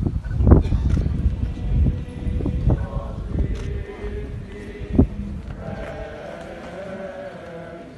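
Footsteps shuffle on pavement as a group walks past.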